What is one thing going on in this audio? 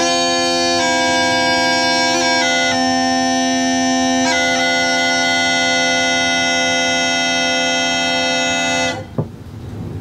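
A concertina plays slow, sustained chords.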